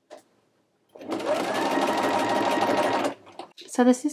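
A sewing machine runs, whirring steadily as it stitches.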